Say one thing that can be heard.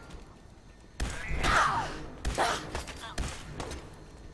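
A gun fires several sharp shots.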